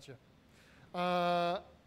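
An electric guitar plays a sustained note.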